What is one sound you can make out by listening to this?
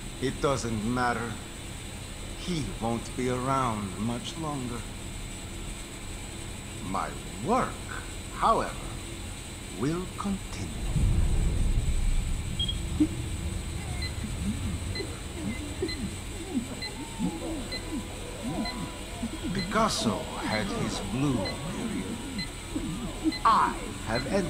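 A man speaks calmly and menacingly, close by.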